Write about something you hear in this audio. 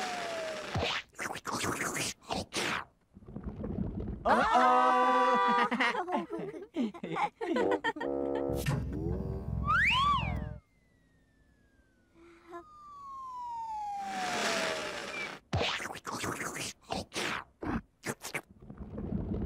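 A small vacuum cleaner whirs and sucks in short bursts.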